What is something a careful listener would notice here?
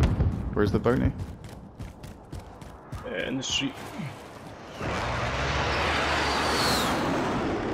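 Footsteps run quickly across a hard rooftop.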